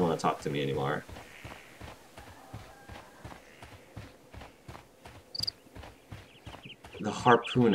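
Footsteps tap steadily on hard ground.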